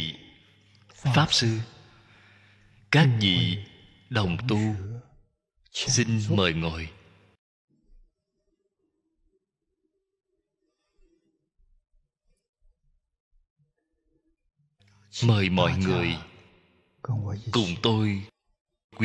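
An elderly man speaks slowly and calmly into a close microphone.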